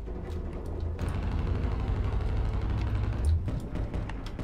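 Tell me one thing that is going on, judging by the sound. A gun fires in rapid muffled bursts underwater.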